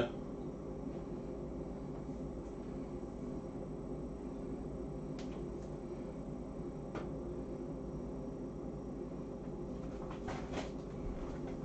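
Tongs click against a metal tray.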